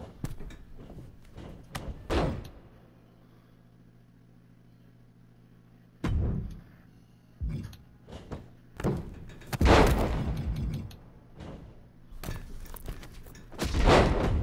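Wrestlers' bodies slam hard onto a ring mat with loud thuds.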